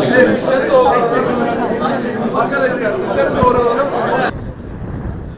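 Men talk loudly and excitedly close by.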